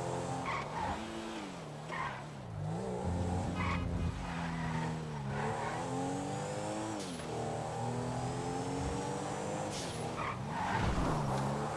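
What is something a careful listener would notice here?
Tyres hiss on a road.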